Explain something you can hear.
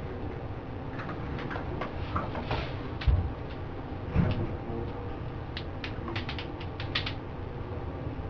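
A person's hands fidget and rub together with soft clicks.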